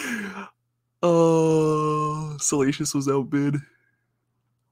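A man laughs excitedly.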